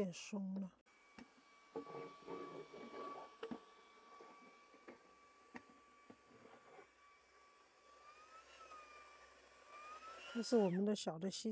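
A small handheld vacuum cleaner whirs steadily.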